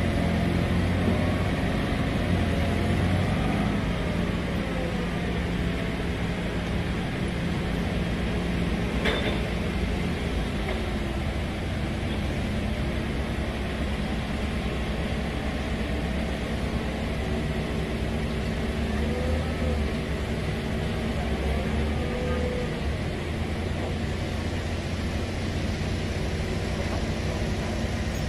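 A forklift engine hums steadily nearby.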